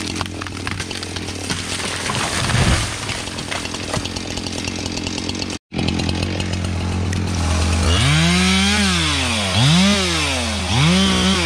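A chainsaw idles nearby.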